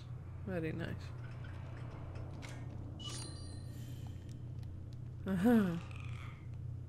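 A young woman speaks in short bursts through a headset microphone, close up.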